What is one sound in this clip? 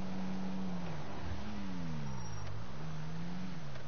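A car engine's pitch drops and rises as it slows and speeds up.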